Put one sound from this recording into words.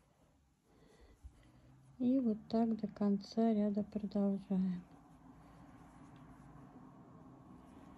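A crochet hook softly rubs and tugs through yarn.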